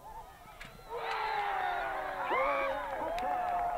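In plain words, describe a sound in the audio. Young women shout and cheer excitedly outdoors.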